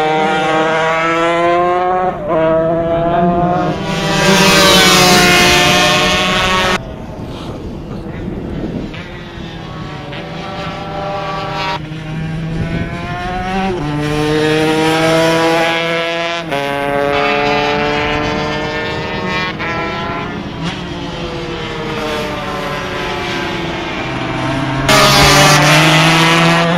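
Motorcycle engines roar and whine loudly as the bikes race past, rising and falling in pitch with gear changes.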